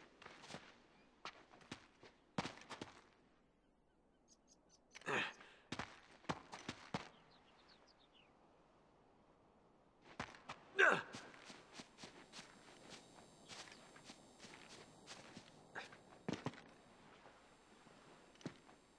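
Footsteps tap on a hard stone floor in an echoing hall.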